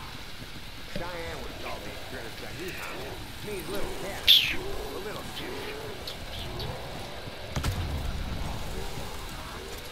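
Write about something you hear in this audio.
Monsters growl and snarl close by.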